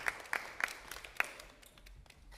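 Sharp knocks and clicks ring out in a large echoing hall.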